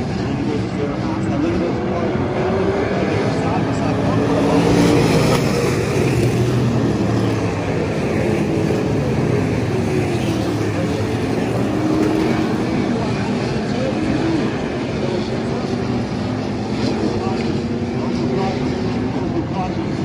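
Race car engines roar and whine as cars speed around a dirt track.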